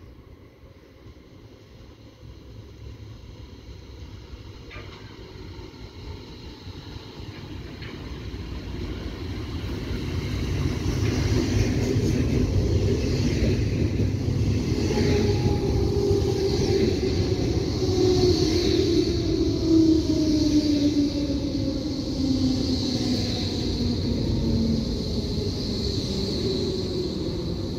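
An electric train approaches and rolls past close by, with rumbling wheels.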